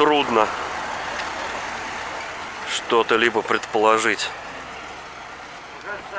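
A heavy truck's engine rumbles as the truck drives away over grass.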